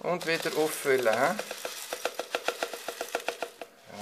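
Small granules pour into a plastic pot with a soft rattle.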